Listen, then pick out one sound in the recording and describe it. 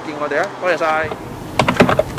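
A man speaks calmly through a close microphone.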